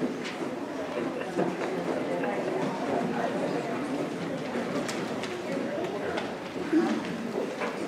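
Feet shuffle and step on a wooden stage.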